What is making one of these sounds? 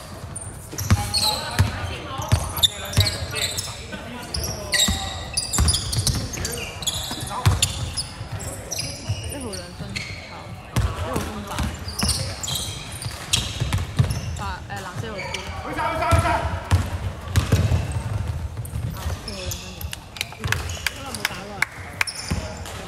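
Young men shout and call out to each other during play.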